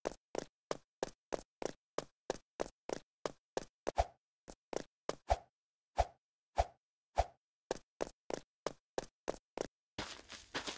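Quick light footsteps tap steadily on a hard surface.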